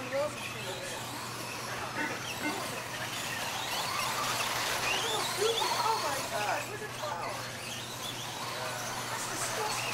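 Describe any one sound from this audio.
Tyres of toy cars crunch and skid on loose dirt.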